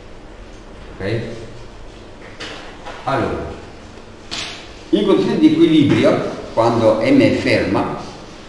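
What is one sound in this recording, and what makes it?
A man explains calmly.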